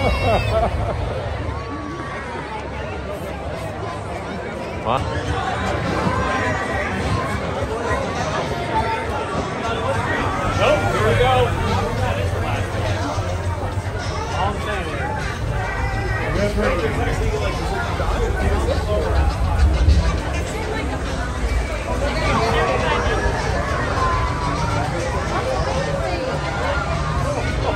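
Men and women talk close by with animation.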